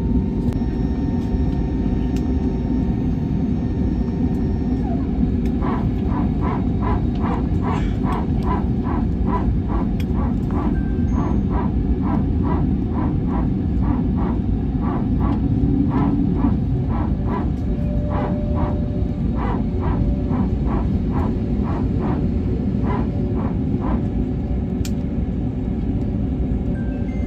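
A jet engine roars steadily, heard from inside an airliner cabin.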